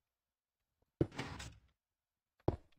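A game block breaks with a short crunch.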